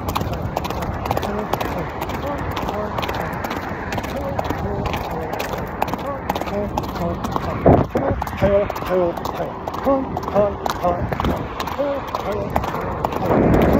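A horse gallops on sand, hooves drumming.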